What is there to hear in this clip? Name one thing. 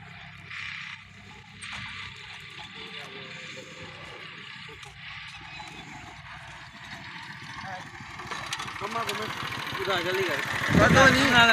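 A motorcycle engine idles and runs nearby.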